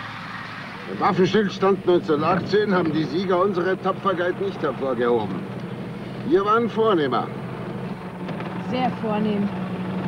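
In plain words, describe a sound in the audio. A man speaks close by.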